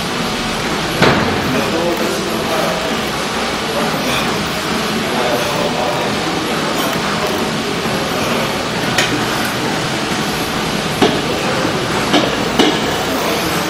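Metal dumbbell plates clink.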